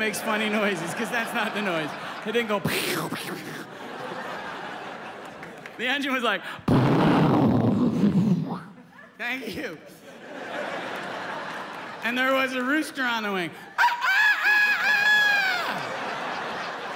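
A middle-aged man talks with animation into a microphone in a large hall.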